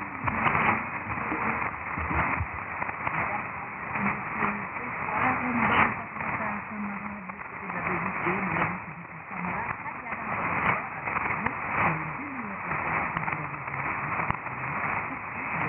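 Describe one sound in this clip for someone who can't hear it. Shortwave radio static hisses and crackles steadily.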